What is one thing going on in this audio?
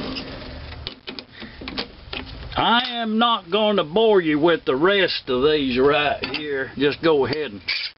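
A chuck key clicks and clanks against a metal chuck.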